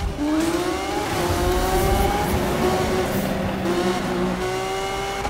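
A race car engine roars and revs at high speed.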